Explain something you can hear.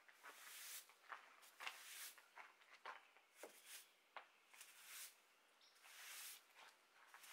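A broom sweeps grit across concrete with quick scratchy strokes.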